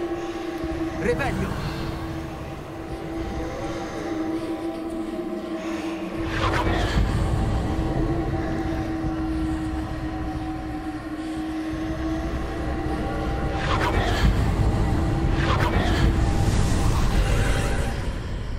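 A magic spell crackles and bursts with a sharp whoosh.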